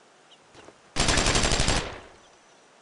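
A machine gun fires a short rapid burst.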